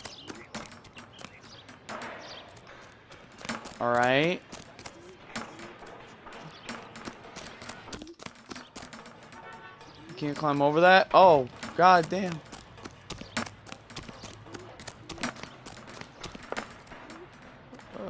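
Footsteps run quickly over dirt and gravel.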